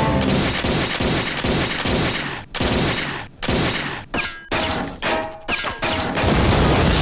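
Pistols fire in rapid, sharp shots.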